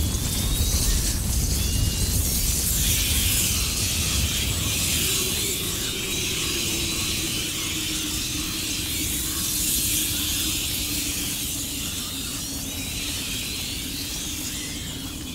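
A torch fire crackles.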